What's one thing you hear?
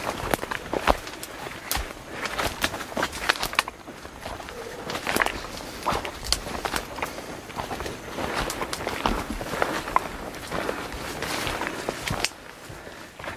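Leaves and branches rustle and brush against a moving body.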